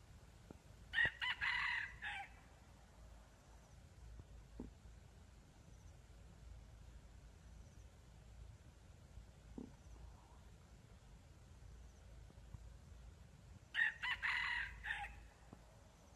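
A rooster crows loudly nearby, outdoors.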